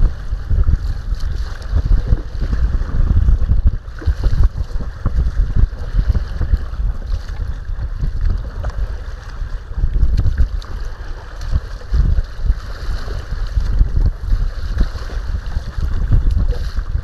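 Choppy waves slap against a kayak's hull.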